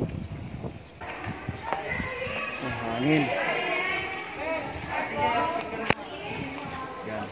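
Women and children chatter and call out nearby in the open air.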